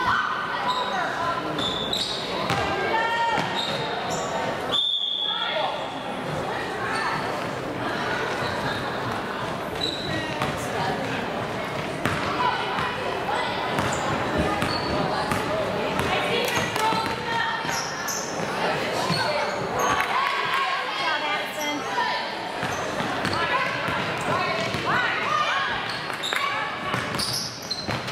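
Young girls shout and call out to each other across the court.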